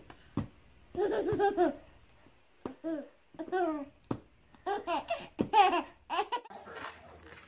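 A baby giggles and squeals with delight close by.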